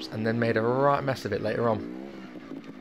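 A motorbike engine revs up and down.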